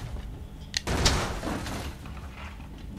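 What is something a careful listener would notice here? A wooden door bangs open with a loud thud.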